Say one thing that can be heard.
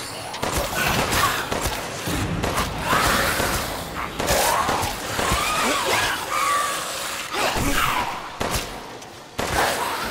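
A creature groans and snarls close by.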